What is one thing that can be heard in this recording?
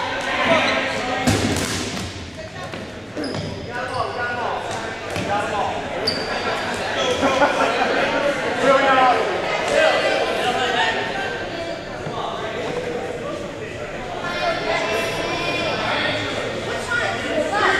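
A crowd of young people chatters and calls out in a large echoing gym.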